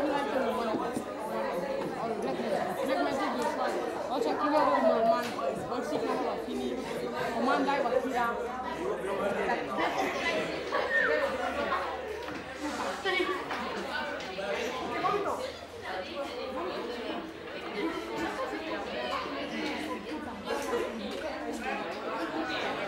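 Teenage boys talk among themselves.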